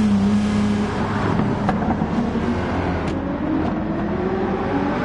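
A racing car engine roars loudly, its pitch rising and falling.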